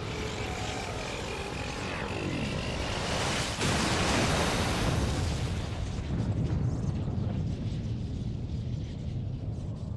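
A magical blast bursts with a loud rushing boom.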